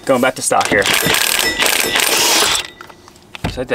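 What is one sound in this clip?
An impact wrench whirs and rattles loudly.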